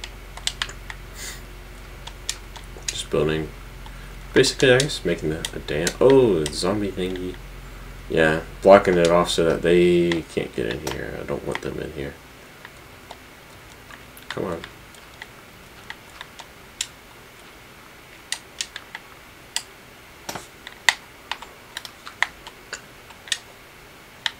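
Game blocks click and thud as they are placed and dug.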